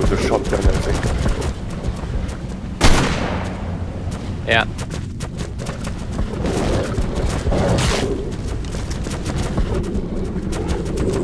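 Heavy creatures' footsteps thud and scrape on rocky ground.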